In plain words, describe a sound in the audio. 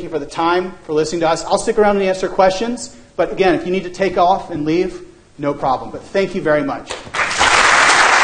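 A man speaks to an audience through a microphone in an echoing hall.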